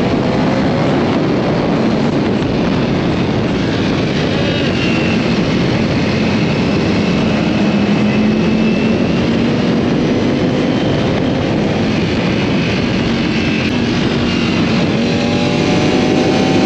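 A sport bike engine drones while cruising at speed.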